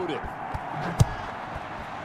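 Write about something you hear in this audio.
A football is kicked with a thump.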